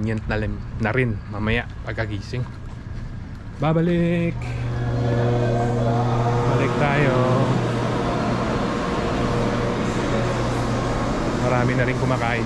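A man speaks close by with animation.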